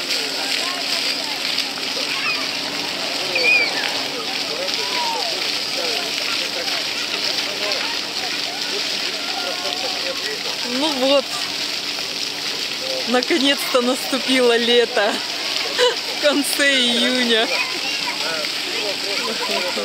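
Children shout and squeal playfully nearby.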